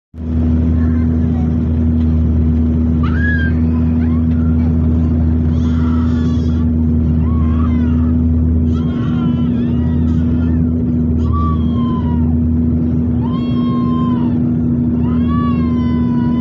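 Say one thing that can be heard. A propeller aircraft engine drones loudly and steadily, heard from inside the cabin.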